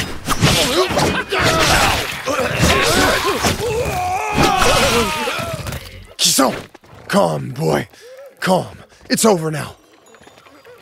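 Men shout and grunt while fighting.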